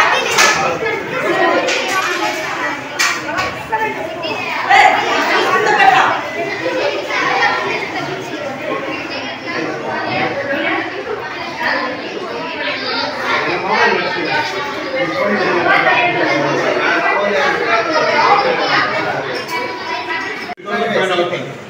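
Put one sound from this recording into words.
Children talk with animation close by.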